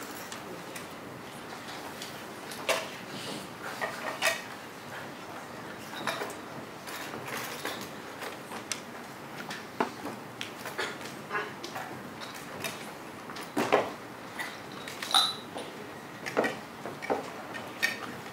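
A young woman and a young man talk quietly, heard from a distance in a large room.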